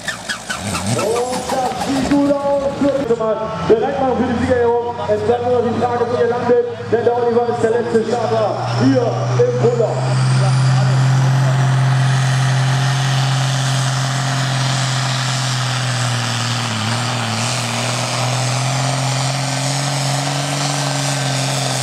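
A tractor engine revs up and down, then settles into a deep, steady roar as it pulls.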